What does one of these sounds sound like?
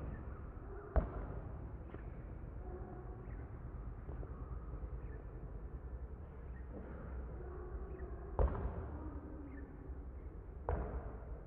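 A basketball bounces on a hard court.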